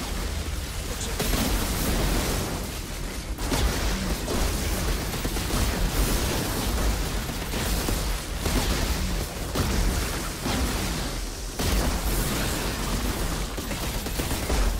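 Guns fire in rapid, heavy bursts.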